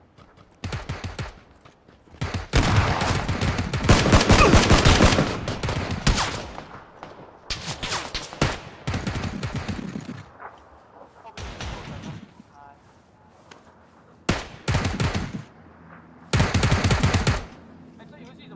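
Gunshots fire in rapid bursts, close by.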